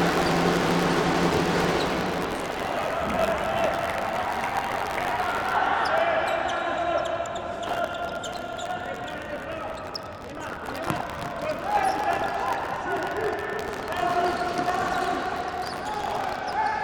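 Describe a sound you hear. Sneakers squeak on a hard indoor court.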